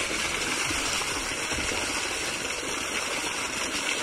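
Water splashes over a hand and leaves held in the stream.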